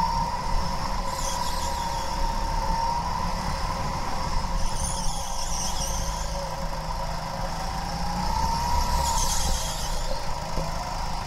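Kart tyres hiss and squeal briefly through the turns.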